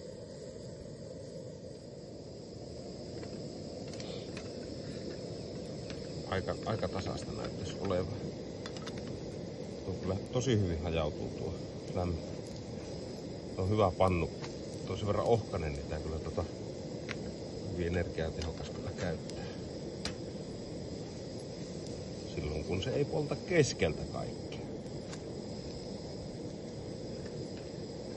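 A camping stove burner hisses steadily.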